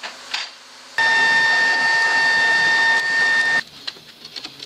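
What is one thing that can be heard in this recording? A forge fire roars with a blower humming.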